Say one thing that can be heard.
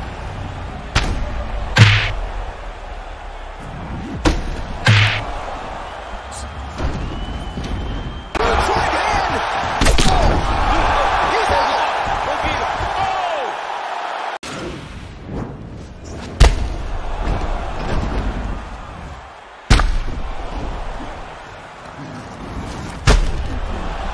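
Heavy punches thud hard on a fighter's body.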